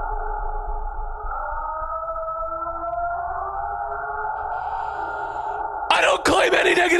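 A reel-to-reel tape recorder plays back a muffled recording.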